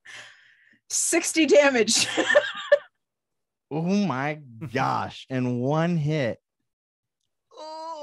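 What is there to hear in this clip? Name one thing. A woman laughs over an online call.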